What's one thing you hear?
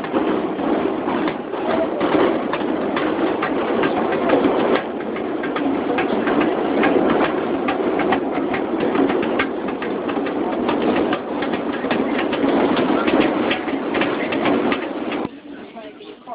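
A subway train rumbles and rattles loudly along the tracks.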